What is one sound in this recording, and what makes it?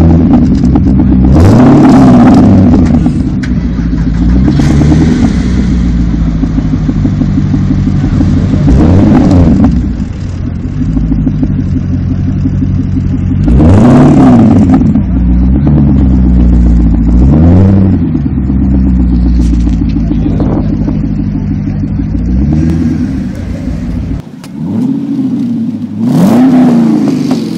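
A sports car's engine idles with a deep, throaty rumble close by.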